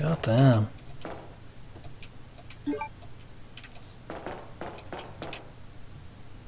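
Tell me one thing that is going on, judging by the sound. Footsteps clang on a metal floor.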